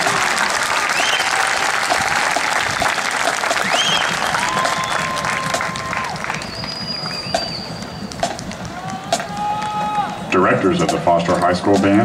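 A marching band plays loudly outdoors in a large stadium.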